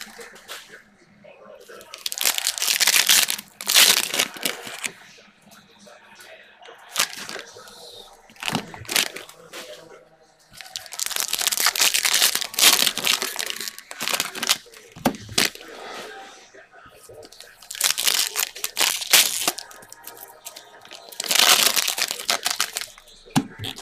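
Cards shuffle and slide against each other.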